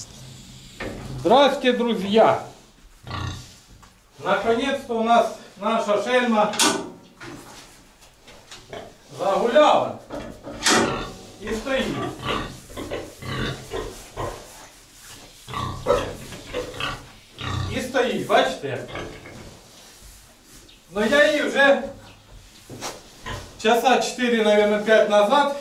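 A man talks loudly and with animation close by.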